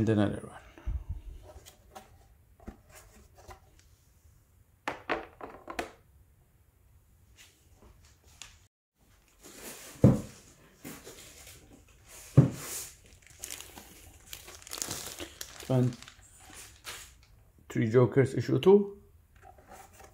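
Hard plastic cases clack and tap against each other as they are handled.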